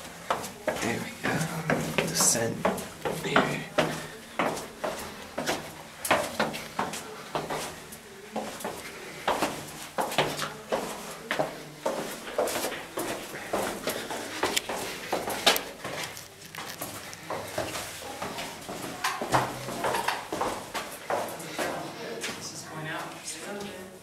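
Footsteps crunch and scuff on a stone floor in a narrow passage.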